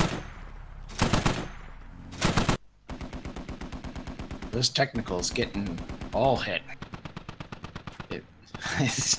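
A heavy machine gun fires in long, rapid bursts.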